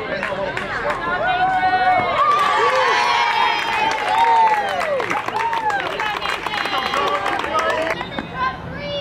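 Young boys cheer and shout excitedly close by.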